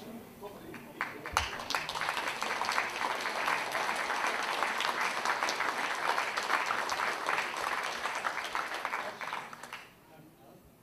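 An audience applauds loudly in a hall.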